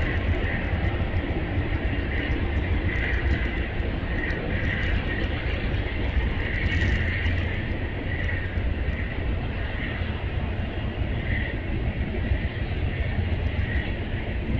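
A passenger train rolls slowly past with a low rumble.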